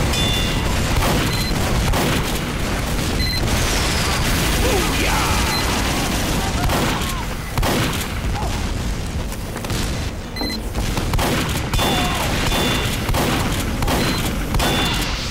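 A shotgun fires with sharp blasts.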